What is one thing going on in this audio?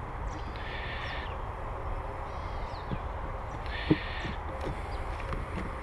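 A wooden hive box scrapes and knocks as it is lifted.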